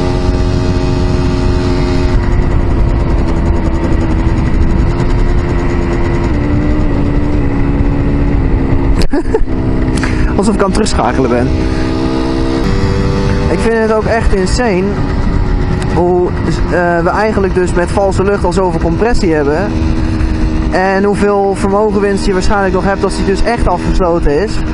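A small motorcycle engine hums steadily close by.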